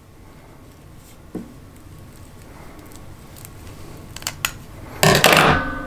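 Scissors snip through a plastic tube.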